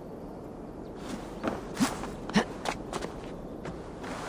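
Hands and feet knock on a wooden ladder while climbing.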